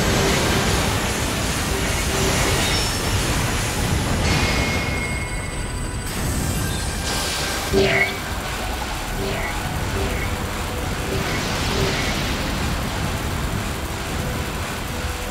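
Loud energy blasts roar and crackle without a break.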